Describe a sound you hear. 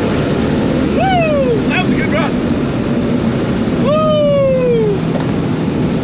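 A man whoops and yells excitedly close by.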